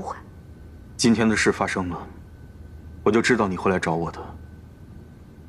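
A young man speaks firmly close by.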